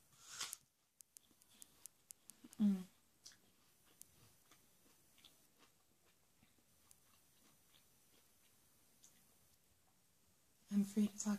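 A young woman chews and licks her fingers with wet mouth sounds.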